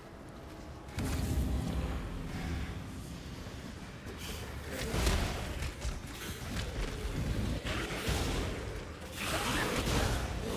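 Magic spells explode and crackle in a loud burst of game effects.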